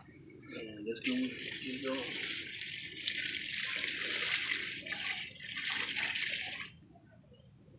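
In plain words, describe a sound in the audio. Water pours from a bucket onto soil with a steady splashing hiss.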